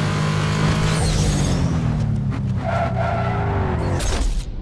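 A car engine winds down as the car slows.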